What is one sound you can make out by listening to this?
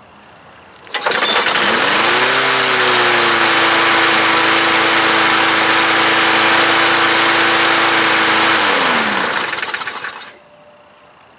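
A lawn mower engine starts and runs with a loud, steady roar, then winds down.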